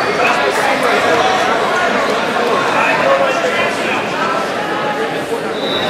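A crowd of spectators chatters loudly in a large echoing hall.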